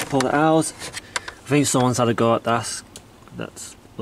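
A glove box lid clicks open.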